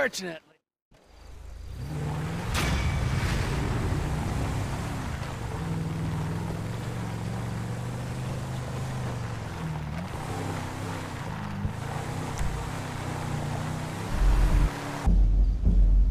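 An SUV engine hums as the vehicle drives along.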